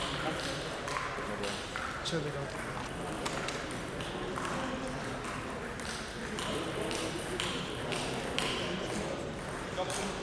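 Table tennis balls click off paddles and tables in a large echoing hall.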